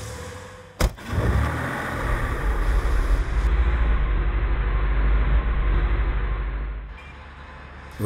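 A car engine hums with a low rumble as the car rolls along.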